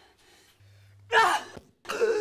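A woman shouts excitedly.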